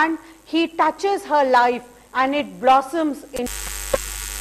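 A middle-aged woman speaks calmly and steadily into a microphone.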